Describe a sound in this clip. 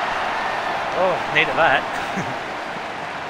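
An umpire's whistle blows shrilly a few times.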